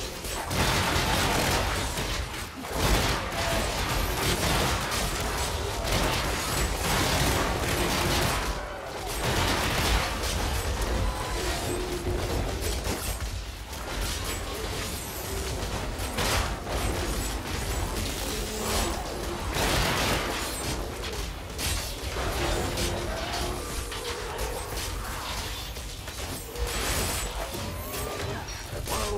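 Spells and blows crash and blast in a fast fight.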